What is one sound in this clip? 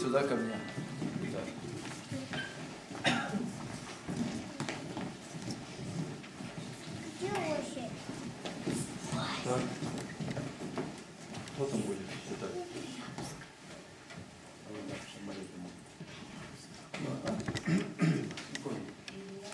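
A group of people murmur quietly nearby.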